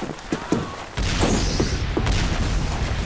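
Rockets whoosh past and explode.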